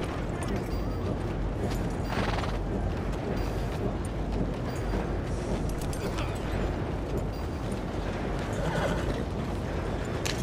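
A horse's hooves clop slowly on a muddy street.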